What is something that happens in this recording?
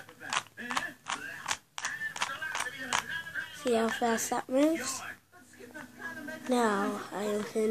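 A small plastic puzzle cube clicks as it is twisted.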